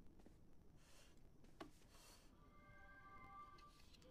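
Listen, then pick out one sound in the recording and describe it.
A chair scrapes as someone sits down.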